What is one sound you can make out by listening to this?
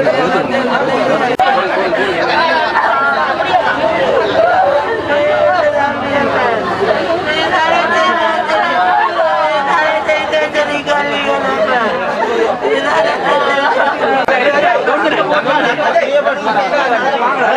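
Several women wail and sob loudly close by.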